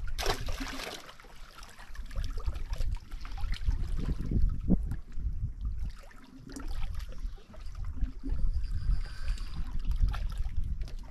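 Wind gusts outdoors, rumbling loudly.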